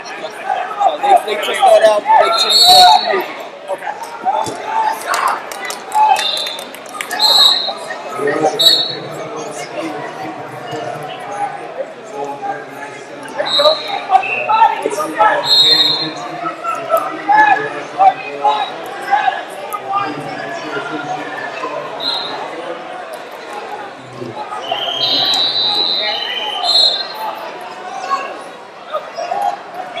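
Coaches and spectators shout encouragement from close by.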